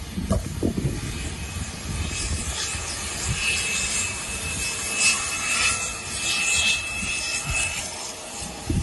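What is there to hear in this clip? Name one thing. A jet engine whines steadily as an airliner taxis.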